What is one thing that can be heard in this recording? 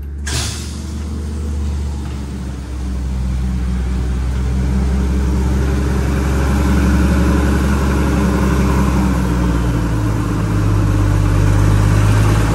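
A large overhead door rises with a steady motor hum and rattle, heard in a big echoing space.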